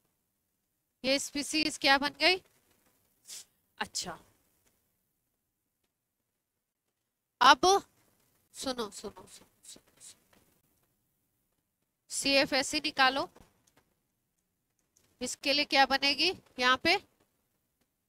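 A woman speaks calmly into a clip-on microphone.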